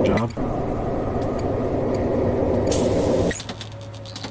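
Loud static crackles and hisses from a monitor, then cuts off.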